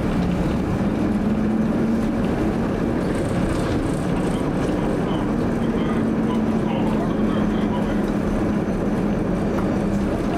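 A tram motor hums steadily with a low drone.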